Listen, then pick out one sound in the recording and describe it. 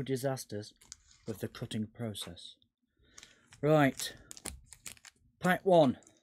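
Foil card packs crinkle in a man's hands.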